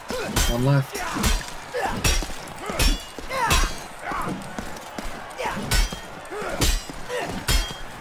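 Men grunt and yell as they fight.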